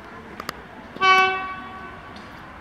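A locomotive horn sounds in the distance.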